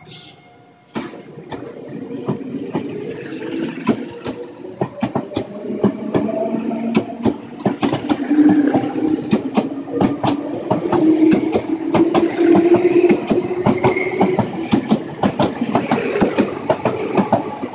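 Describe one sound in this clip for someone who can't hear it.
A train rushes past close by with a loud rumble.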